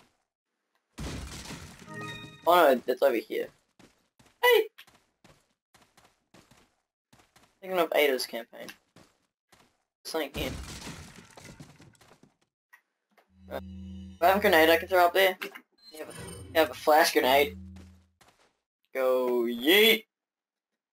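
A young man talks with animation nearby, in short bursts.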